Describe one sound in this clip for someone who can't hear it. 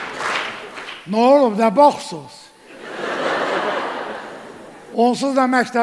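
A man speaks loudly on stage through a microphone, heard in a large hall.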